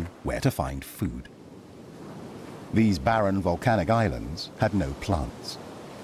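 Waves crash against rocks below a cliff.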